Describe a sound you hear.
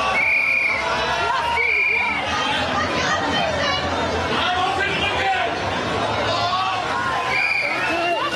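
A crowd shouts and clamours close by outdoors.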